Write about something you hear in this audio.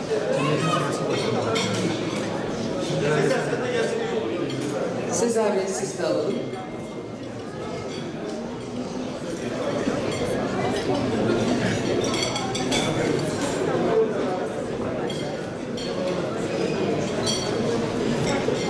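A crowd of people murmurs and chatters in an echoing hall.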